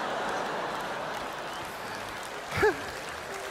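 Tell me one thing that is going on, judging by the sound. An audience applauds in a large hall, then fades.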